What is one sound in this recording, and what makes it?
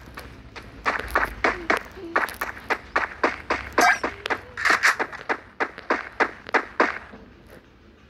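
Quick footsteps run over a hard floor.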